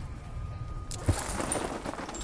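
Boots thud onto a hard rooftop.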